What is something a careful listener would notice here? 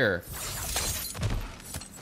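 A metal chain rattles and clanks.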